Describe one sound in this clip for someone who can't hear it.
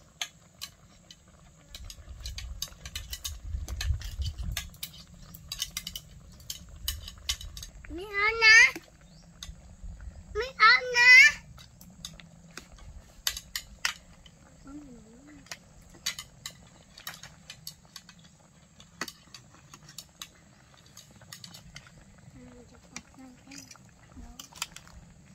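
A metal ladle clinks and scrapes against a metal wok.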